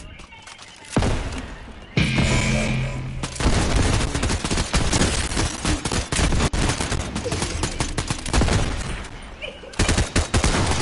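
Gunfire cracks rapidly in quick bursts.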